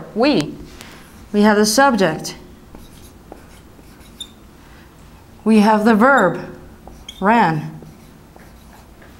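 A marker squeaks and taps against a whiteboard.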